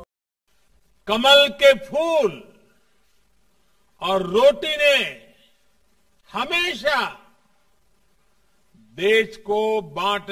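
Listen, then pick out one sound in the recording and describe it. An elderly man speaks forcefully into a microphone in short phrases, with pauses.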